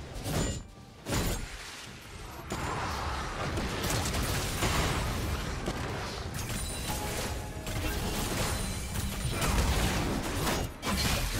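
Game spells whoosh and crackle with magical bursts.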